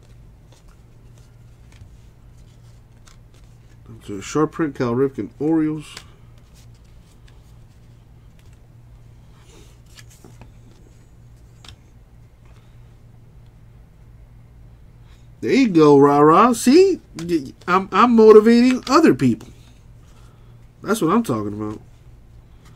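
Trading cards rustle and slide softly as hands flip through them.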